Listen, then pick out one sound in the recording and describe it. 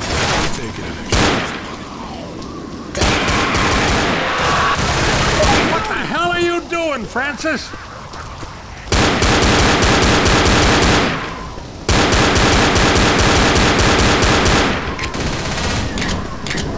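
A pistol fires repeated sharp shots.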